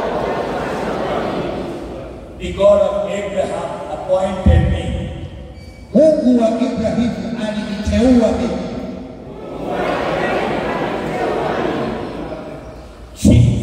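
Another man speaks into a microphone over loudspeakers, answering in turn.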